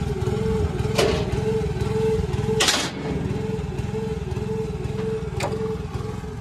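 A metal gate clanks and rattles.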